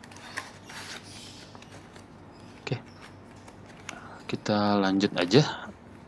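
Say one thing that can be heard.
A sticker peels away from a paper backing with a soft tearing sound.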